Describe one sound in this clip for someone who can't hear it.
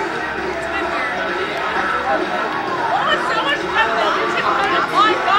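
A crowd of men and women chat close by outdoors.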